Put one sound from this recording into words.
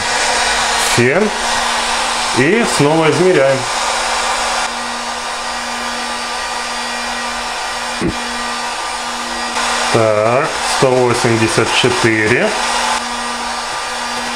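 A heat gun blows with a steady whooshing hiss.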